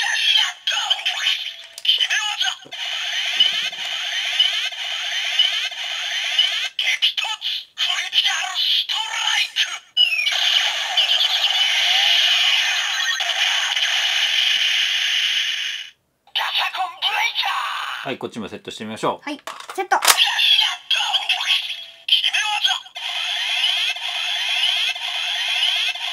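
An electronic toy plays loud jingles and effects.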